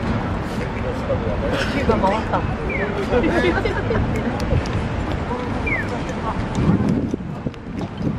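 Several men and women talk nearby outdoors.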